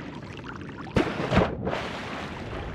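Water splashes as something drops into it.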